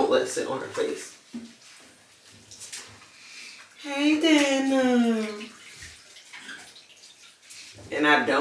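A woman talks softly and close by.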